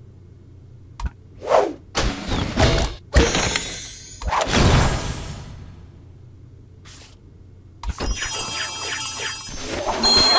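Game sound effects chime and whoosh as rewards are revealed.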